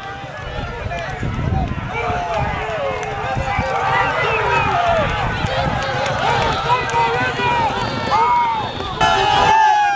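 Horses gallop hard on a dirt track, hooves pounding.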